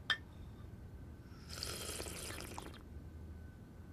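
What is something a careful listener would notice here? Teacups clink on saucers.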